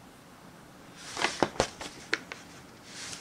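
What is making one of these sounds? Sheets of paper rustle and crinkle close by.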